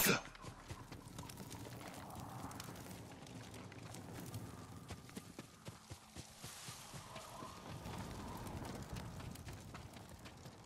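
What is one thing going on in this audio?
Fires crackle and roar nearby.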